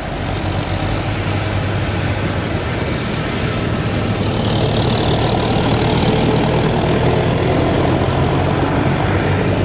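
A forage harvester chops maize stalks with a loud rushing whir.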